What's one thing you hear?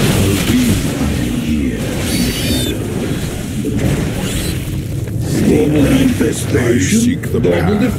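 Gunfire and blasts crackle in a battle.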